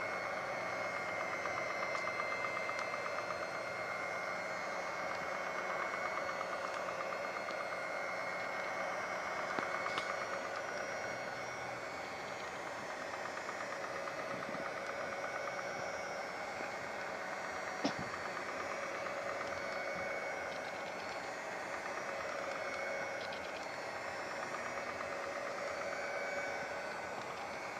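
Mixer beaters whisk through thick batter in a bowl.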